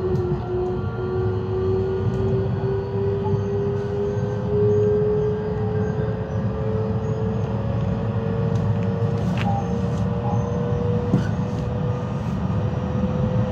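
A train's motor whines with a slowly rising hum.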